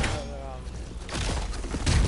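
Heavy footsteps crunch through snow.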